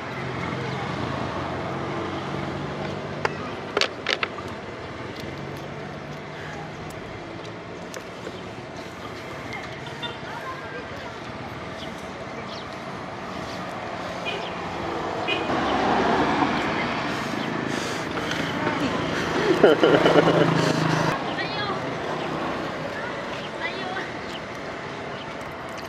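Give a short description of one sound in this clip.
Fingers peel and crack an eggshell.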